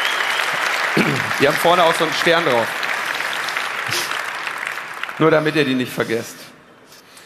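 A man speaks calmly into a microphone in a hall.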